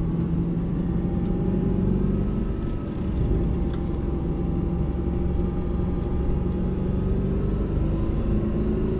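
Tyres rumble on the road surface.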